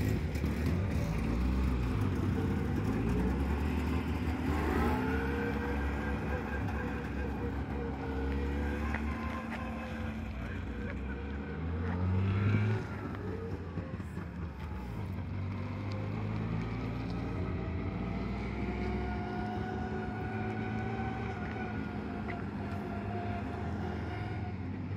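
A small car engine putters and revs as the car drives slowly off.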